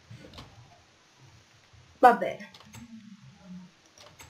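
A wooden door opens with a knock.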